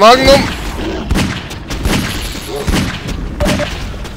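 A revolver fires loud, sharp shots.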